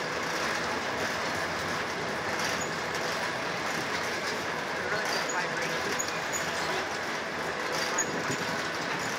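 Freight train wheels rumble and clatter steadily over the rails close by.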